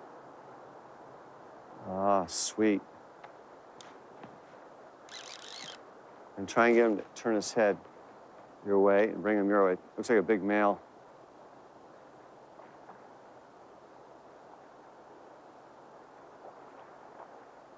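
Water flows and ripples gently.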